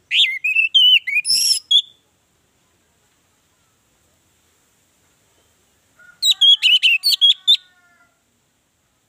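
An orange-headed thrush sings in short bursts of varied whistled phrases.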